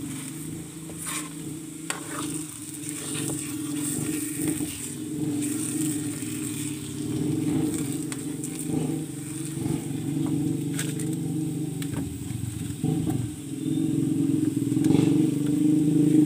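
A metal spatula scrapes and stirs thick food in a pan.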